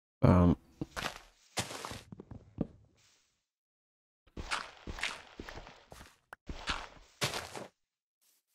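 Blocks crack and break in quick knocks.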